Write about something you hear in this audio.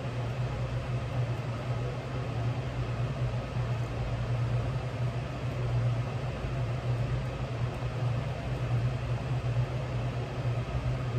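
A sewing machine motor hums steadily.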